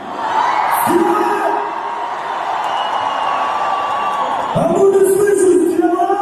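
A large crowd cheers and screams in a big echoing arena.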